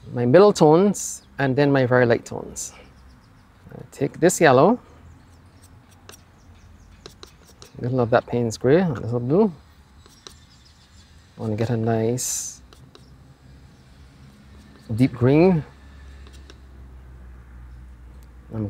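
A paintbrush dabs and swishes softly on a palette.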